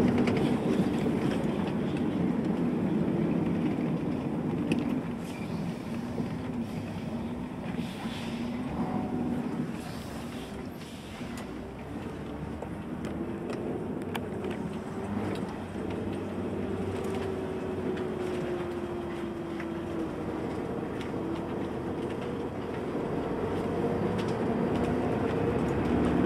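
A bus engine hums and rumbles steadily while driving.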